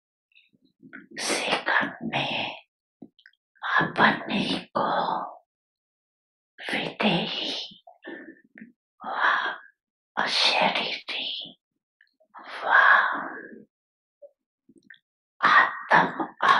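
An elderly woman speaks slowly and calmly into a microphone, pausing between phrases.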